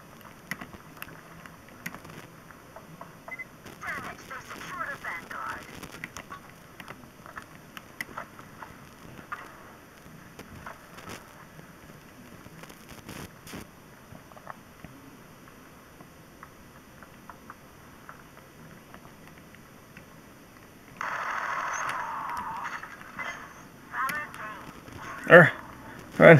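Thumbs tap and click on the buttons of a handheld game console.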